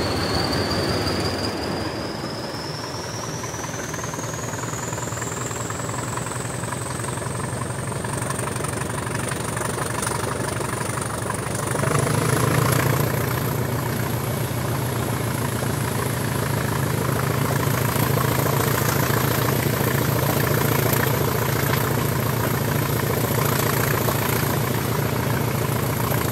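A diesel locomotive engine rumbles steadily and grows louder as it works harder.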